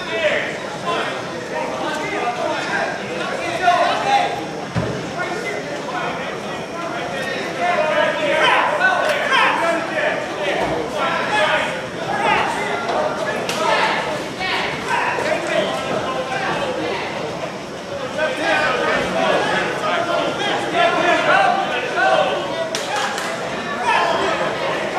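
A crowd of men and women chatter throughout a large echoing hall.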